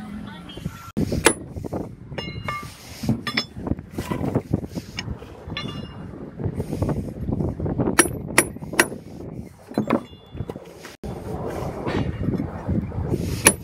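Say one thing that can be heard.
A rubber mallet taps on a block of masonry.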